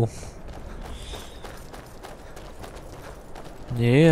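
Footsteps crunch quickly over snowy ground.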